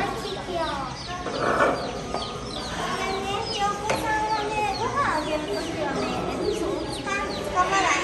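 Young girls talk and exclaim softly nearby.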